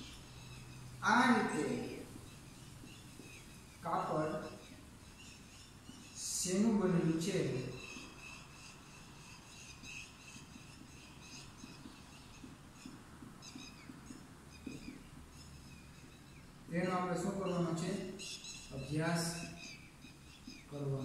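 A young man speaks aloud in short bursts, close by.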